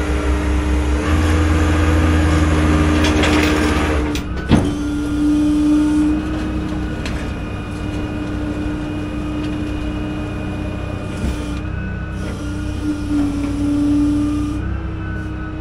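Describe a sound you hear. A winch whines steadily as it pulls a pickup truck.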